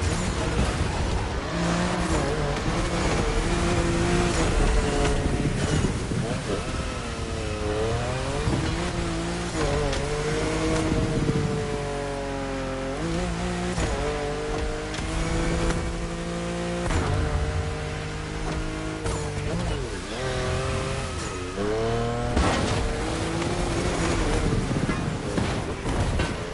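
A racing car engine roars, revving up and down through the gears.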